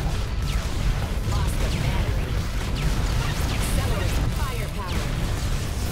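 Video game explosions boom and rumble without pause.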